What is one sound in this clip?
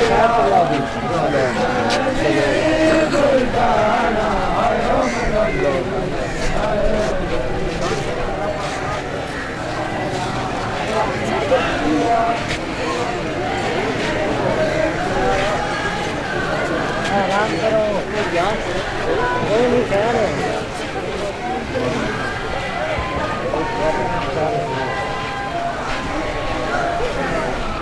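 A large crowd of men chants and murmurs close by, outdoors.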